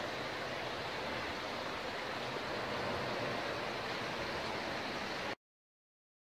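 Water rushes steadily close by.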